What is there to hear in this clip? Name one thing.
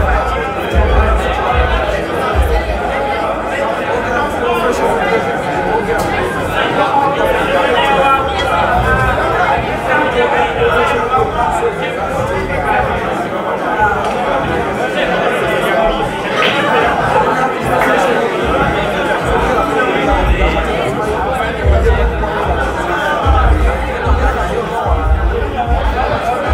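A crowd of people chatters all around in a busy room.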